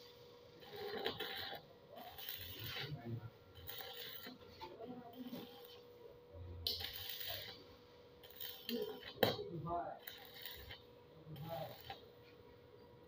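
A stick welder crackles and sizzles as it welds steel angle.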